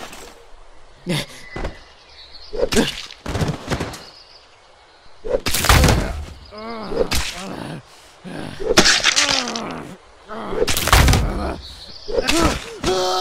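An axe chops into a body with heavy, wet thuds.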